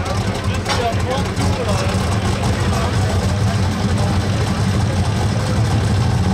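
A powerful engine idles with a deep, steady rumble close by.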